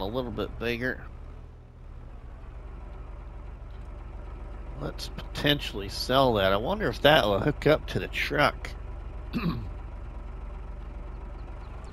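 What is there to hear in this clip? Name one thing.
A tractor engine hums steadily at idle.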